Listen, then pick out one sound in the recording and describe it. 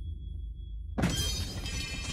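A body thuds heavily onto a floor.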